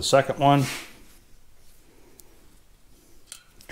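Small metal parts clink softly as fingers handle a bolt.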